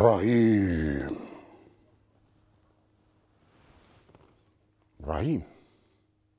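An elderly man speaks with feeling, close by.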